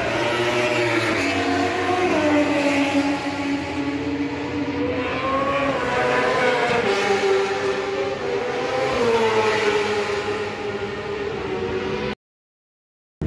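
A motorcycle engine screams loudly, rising and falling in pitch as it races past.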